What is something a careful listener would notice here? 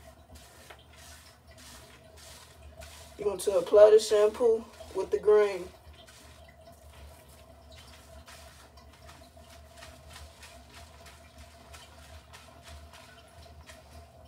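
Hands rub and brush through hair with soft scratching sounds.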